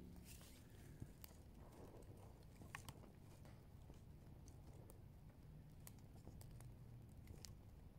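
Thin twigs snap and clatter as they are laid on a fire.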